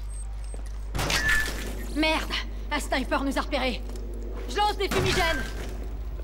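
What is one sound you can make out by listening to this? Gunfire rattles in loud, short bursts.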